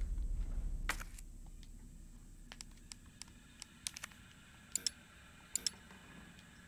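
Soft menu clicks sound a few times.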